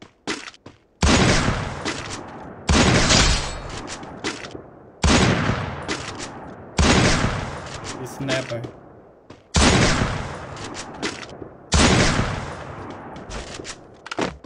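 Loud gunshots from a video game boom at a slow, regular pace.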